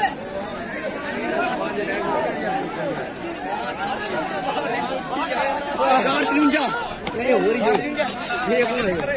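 A crowd of young men chatter and shout nearby outdoors.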